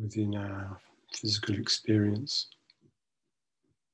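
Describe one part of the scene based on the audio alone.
A middle-aged man speaks calmly and slowly, close to the microphone, heard through an online call.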